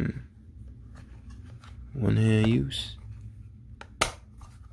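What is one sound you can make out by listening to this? A plastic phone case clicks and taps against a hard tabletop.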